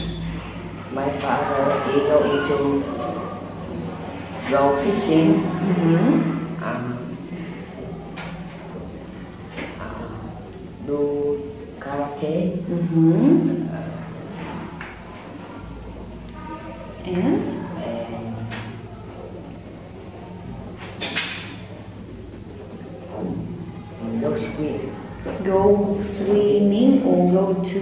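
A boy talks calmly and close by, with pauses.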